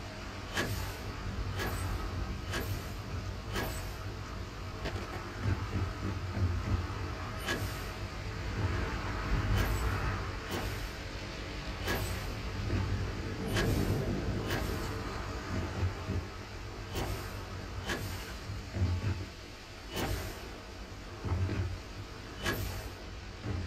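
Footsteps thud on hard metal flooring at a steady walking pace.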